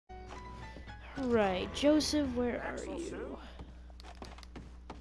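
Boots step slowly across a wooden floor.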